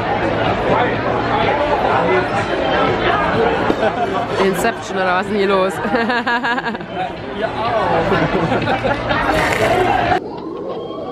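Adults chatter and laugh nearby in a lively crowd.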